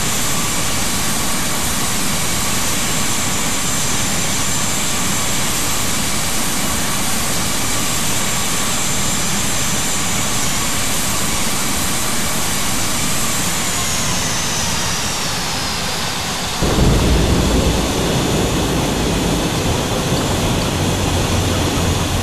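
A jet engine roars with a steady high whine that drops in pitch.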